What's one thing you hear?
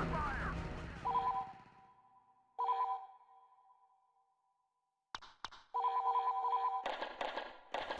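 Short electronic menu tones beep.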